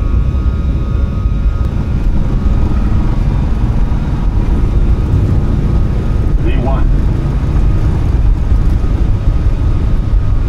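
Jet engines roar steadily as an airliner speeds down a runway.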